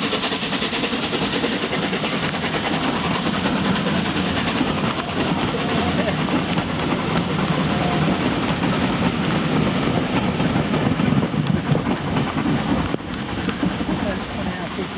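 A train rumbles and clatters along the rails.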